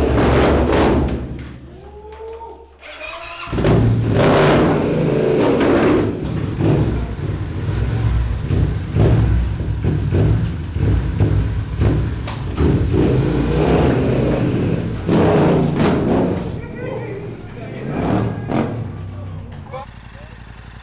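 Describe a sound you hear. A motorcycle engine revs hard and roars, echoing in a hard, enclosed space.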